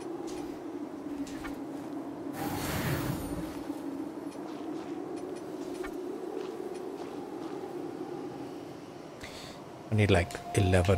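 A low, steady ambient drone hums throughout.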